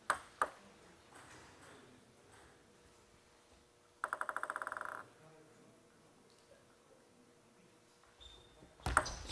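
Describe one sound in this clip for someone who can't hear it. A table tennis ball is struck with a paddle with a sharp click.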